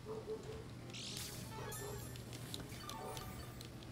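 A bright sparkling chime rings out.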